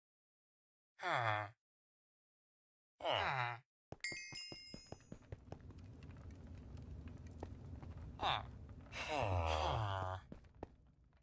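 A game villager grunts and mumbles in short nasal bursts.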